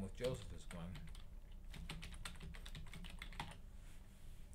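Keys clatter quickly on a keyboard.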